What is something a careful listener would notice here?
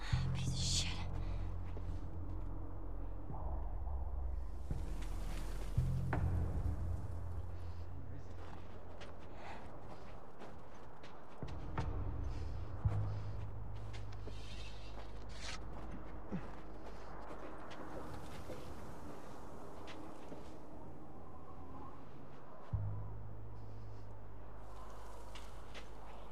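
Soft footsteps crunch slowly over snow and gravel.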